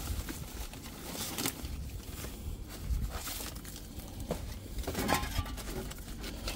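Plastic wrapping crinkles and rustles as a hand rummages through groceries.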